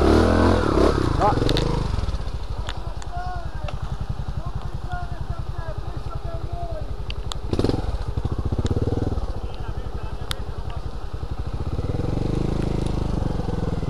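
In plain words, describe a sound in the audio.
A dirt bike engine revs up and down nearby.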